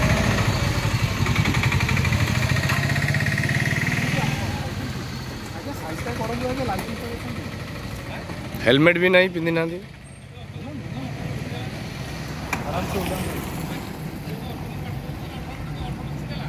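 A scooter engine idles and revs.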